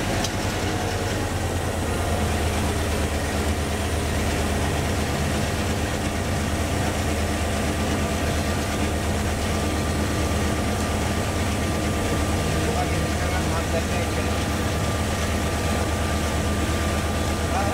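Train wheels rumble and clatter along the rails.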